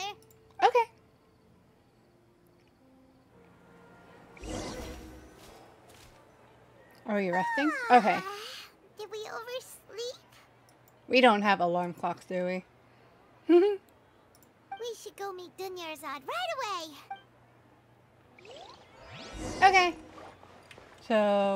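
A young woman talks animatedly into a microphone.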